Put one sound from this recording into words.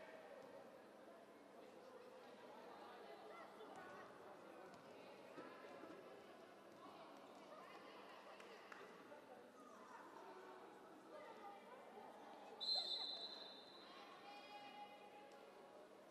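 Young women call out and chatter in a large echoing hall.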